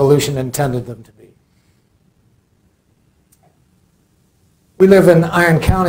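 An elderly man speaks calmly into a microphone, heard through loudspeakers in a large room.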